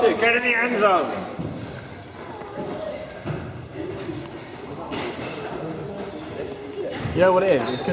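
A young man shouts loudly close by in an echoing hall.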